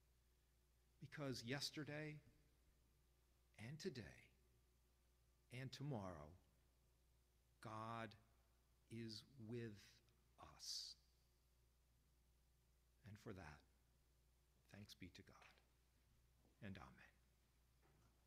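A man speaks calmly into a microphone, with pauses, in a reverberant room.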